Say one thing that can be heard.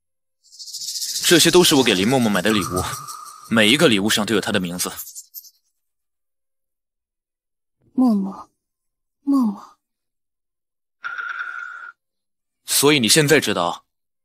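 A young man speaks calmly, close by.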